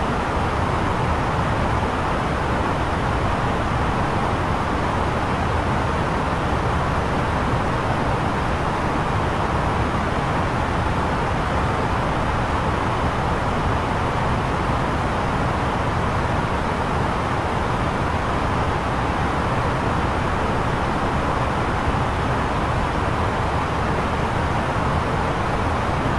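Jet engines and rushing air roar steadily.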